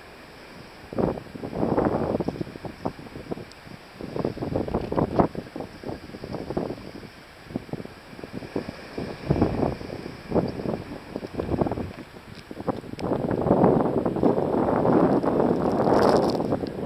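Wind gusts buffet loudly and unevenly outdoors.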